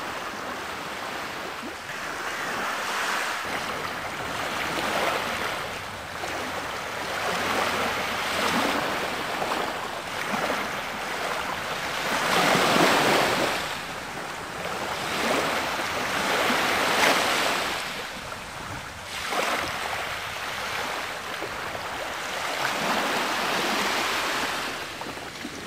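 Small waves wash gently onto a sandy shore in rhythmic surges.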